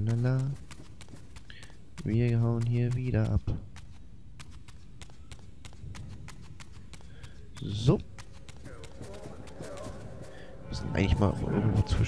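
Quick footsteps patter on a stone floor.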